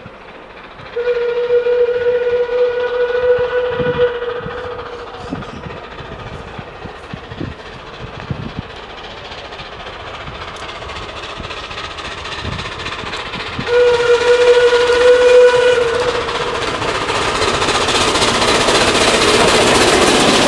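A steam locomotive chuffs as it approaches.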